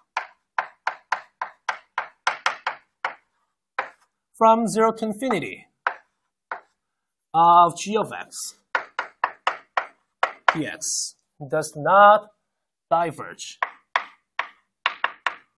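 Chalk taps and scrapes on a blackboard in quick strokes.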